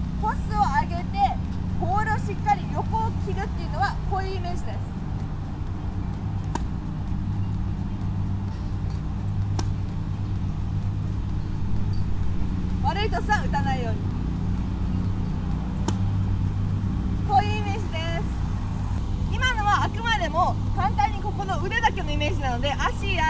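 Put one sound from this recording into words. A young woman talks calmly and cheerfully close by.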